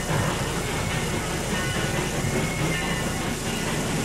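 A steam locomotive rumbles slowly past.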